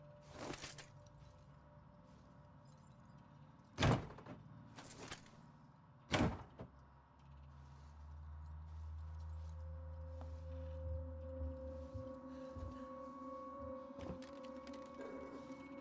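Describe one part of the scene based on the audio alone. A small flame flickers and crackles softly.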